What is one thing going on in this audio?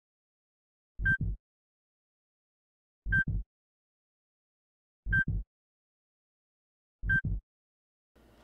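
A heart monitor beeps steadily at an even pace.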